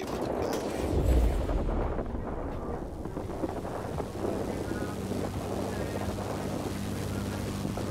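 A plane engine drones steadily.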